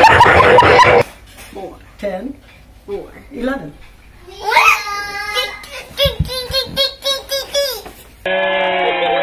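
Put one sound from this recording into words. A young girl talks and laughs.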